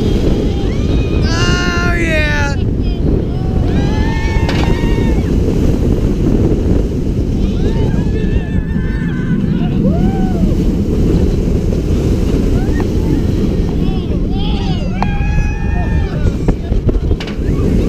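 A young woman screams with excitement close by, again and again.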